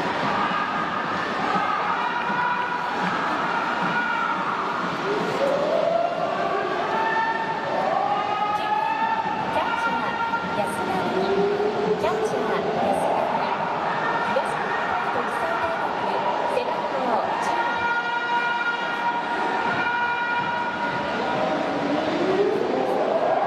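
A large crowd chants and sings loudly in an echoing stadium.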